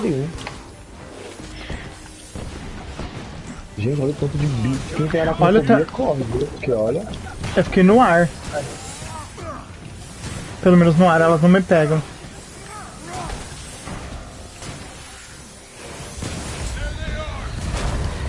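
Energy blasts crackle and whoosh in a fight.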